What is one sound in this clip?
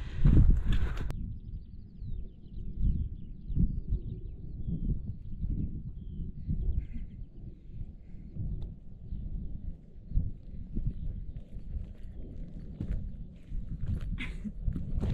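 Wind gusts and rumbles loudly outdoors.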